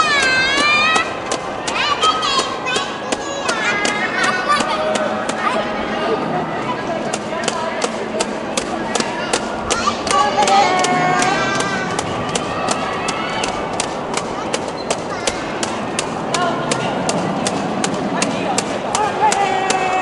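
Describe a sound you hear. Spectators clap their hands steadily and rapidly.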